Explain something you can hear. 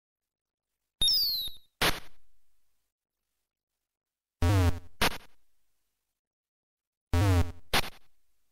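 Short buzzy electronic crashes sound as enemies fall.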